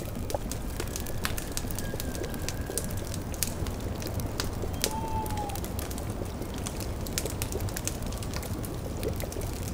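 A cauldron bubbles and gurgles softly.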